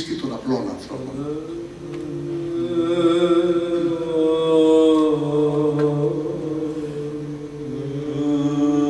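A choir of men and women sings in sustained harmony.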